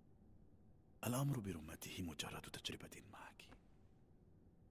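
A man speaks calmly and closely.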